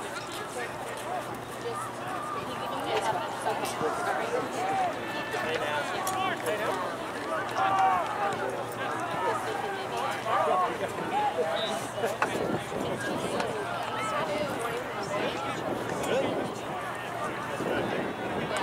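Many voices of players and onlookers shout and call out across an open field outdoors.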